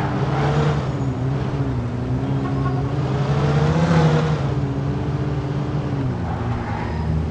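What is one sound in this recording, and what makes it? A car engine hums steadily and rises and falls in pitch as the car speeds up and slows down.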